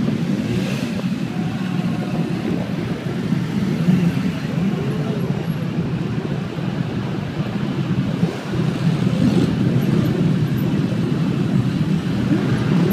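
Motorcycle engines rumble as a stream of bikes rides slowly past.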